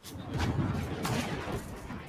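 A rifle fires a loud shot close by.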